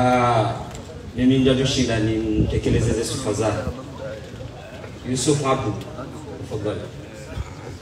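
A man speaks calmly into a microphone, heard through a loudspeaker outdoors.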